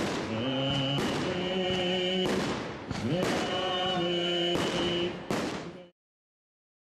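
Fireworks burst with sharp cracks and bangs.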